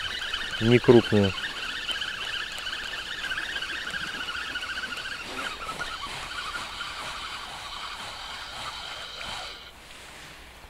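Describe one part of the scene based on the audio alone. A fishing reel whirs steadily as its handle is cranked.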